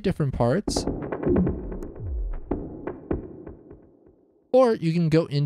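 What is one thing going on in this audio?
Electronic drum hits play in a quick, fading pattern.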